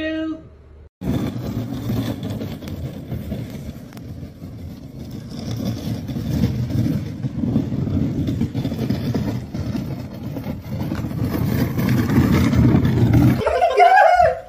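A plastic toy mower rattles across grass.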